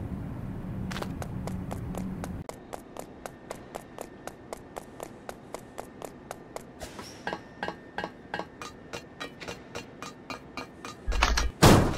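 Quick footsteps patter in a steady running rhythm.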